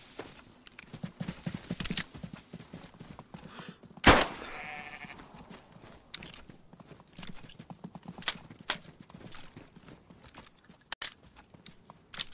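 A pistol clicks as it is handled and reloaded.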